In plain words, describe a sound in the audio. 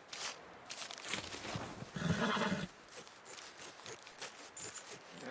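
Hands dig and scrape through crunchy snow.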